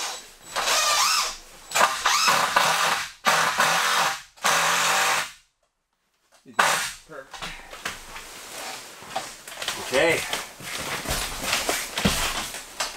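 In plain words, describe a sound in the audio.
Tent fabric rustles as a man works overhead.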